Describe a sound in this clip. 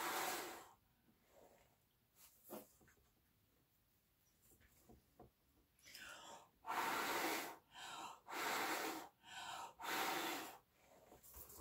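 A person blows hard in short bursts, with close gusts of breath.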